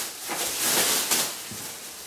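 A cardboard box rustles and scrapes as it is handled.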